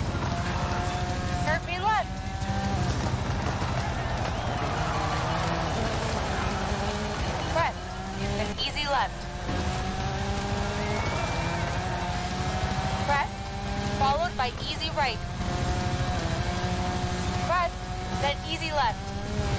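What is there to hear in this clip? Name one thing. A rally car engine roars and revs at high speed.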